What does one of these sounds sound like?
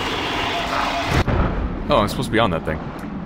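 A fire blast whooshes.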